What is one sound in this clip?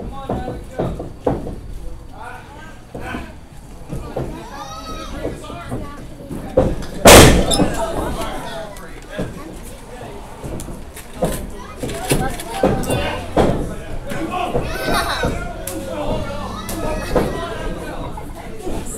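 A crowd of spectators chatters and calls out in a hall with some echo.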